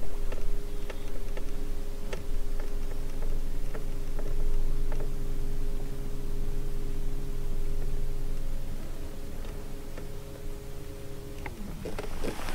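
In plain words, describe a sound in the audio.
An electric boat motor hums steadily, then stops.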